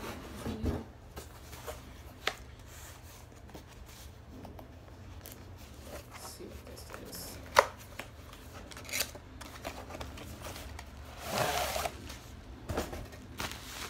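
Cardboard scrapes and taps as a box is opened.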